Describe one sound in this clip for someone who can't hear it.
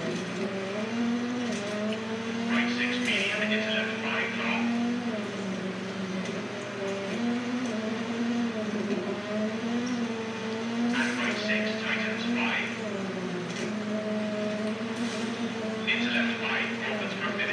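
A rally car engine revs up and down as the gears shift.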